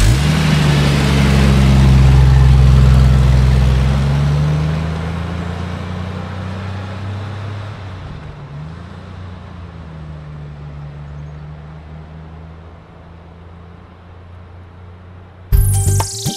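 A car engine runs with a low, steady hum.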